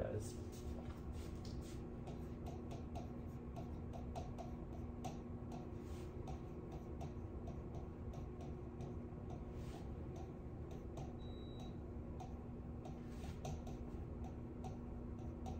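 A marker taps and scratches on a board.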